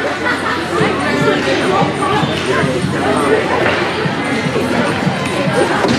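Hockey sticks clack against a ball on a hard floor.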